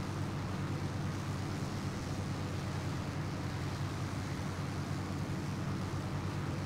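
A propeller plane's engine drones steadily and loudly.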